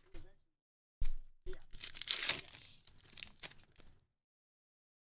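Foil card wrappers crinkle and rustle close by.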